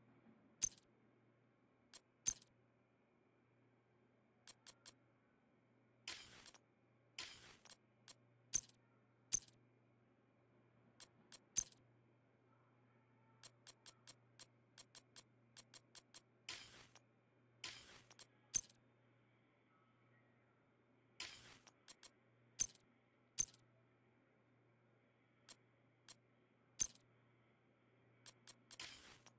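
Short menu clicks tick repeatedly.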